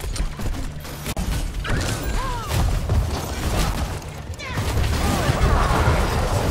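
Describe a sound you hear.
Video game weapons clash and hit repeatedly.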